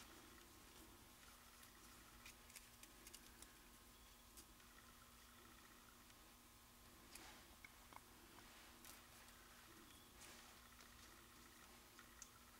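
Metal tweezers click and tap softly against paper.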